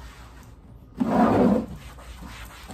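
A plastic lid knocks and scrapes on a tiled floor.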